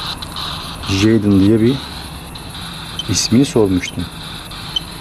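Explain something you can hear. A man speaks briefly and quietly, close by.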